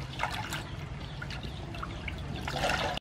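Water splashes in a basin.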